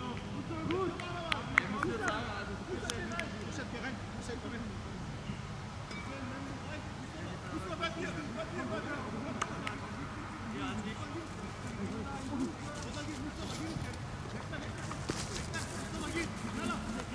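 Men shout and call out to each other outdoors, some distance away.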